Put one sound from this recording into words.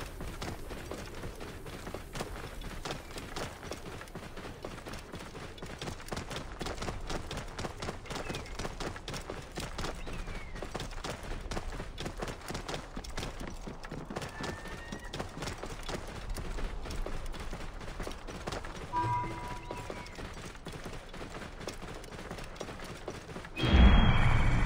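A camel's hooves thud steadily on sand at a quick pace.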